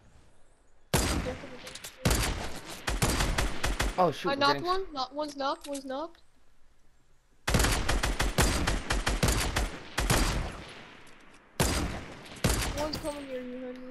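Sniper rifle shots crack loudly, each followed by a long ringing echo.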